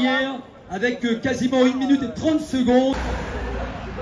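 A man speaks loudly over a crowd.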